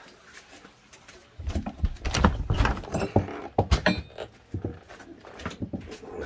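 A metal wire hook rattles as a hand tugs it.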